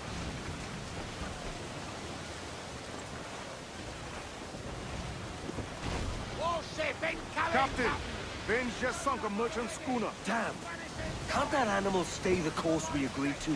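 Waves rush and splash against a ship.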